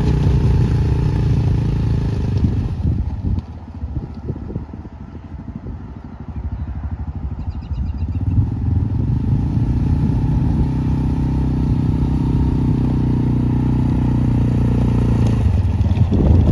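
A small utility vehicle's engine hums and revs as it drives.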